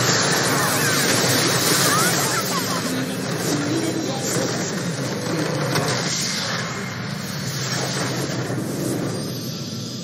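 Game spell effects crackle and blast in a fast fight.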